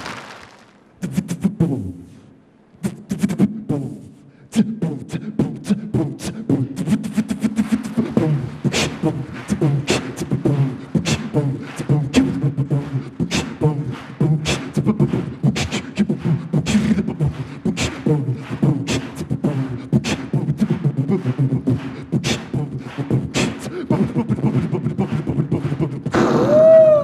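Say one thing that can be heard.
A young man beatboxes into a microphone with fast, punchy drum sounds.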